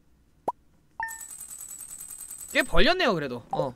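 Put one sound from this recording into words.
Electronic game ticks rapidly as a money tally counts up.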